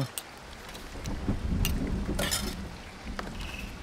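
A metal plate clinks as food is served.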